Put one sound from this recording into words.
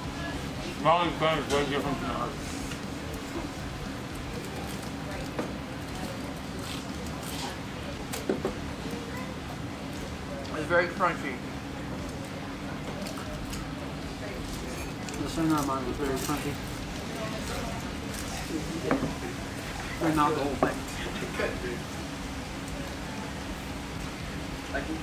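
Cutlery and glasses clink on a table.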